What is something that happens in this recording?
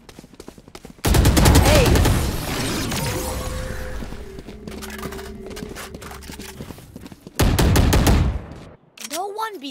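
A loud swirling burst of game effects roars.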